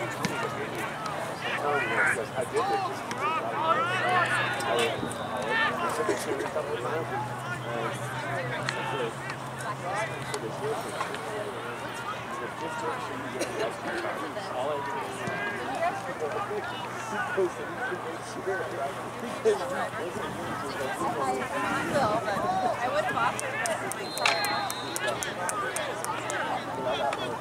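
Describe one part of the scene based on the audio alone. Young men shout and call to each other outdoors, some distance away.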